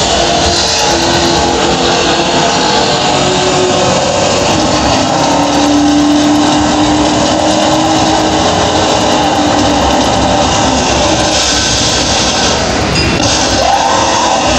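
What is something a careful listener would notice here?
An arcade racing game plays engine and tyre sounds from its speakers.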